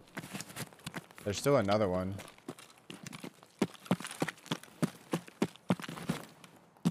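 Footsteps tread at a steady walking pace.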